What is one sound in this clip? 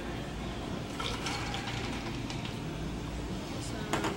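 Liquid pours from a cocktail shaker into a glass.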